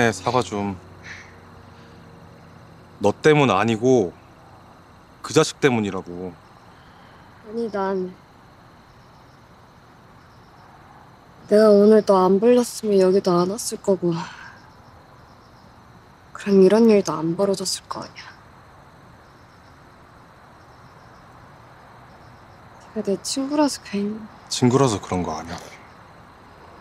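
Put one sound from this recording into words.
A young man speaks softly and with emotion, close by.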